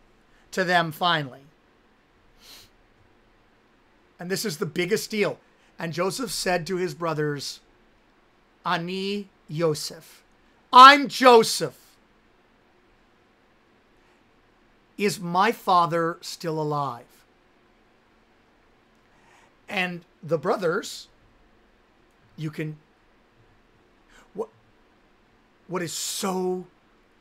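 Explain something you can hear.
A man speaks with animation into a nearby microphone, in short bursts with pauses.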